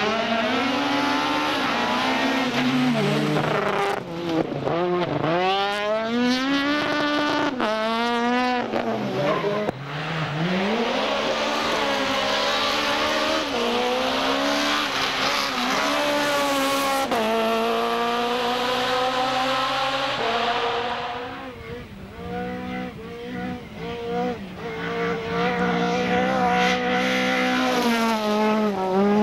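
A rally car engine revs hard and roars past, rising and falling in pitch.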